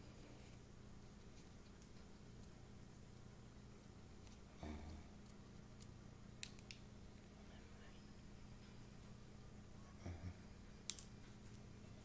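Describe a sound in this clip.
A headset clicks and rustles as it is adjusted against an ear.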